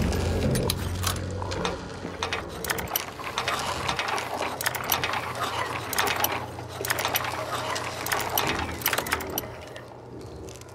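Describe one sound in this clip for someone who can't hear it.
A lock pick scrapes and clicks inside a metal lock.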